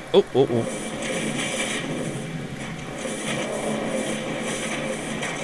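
Fire spells whoosh and crackle.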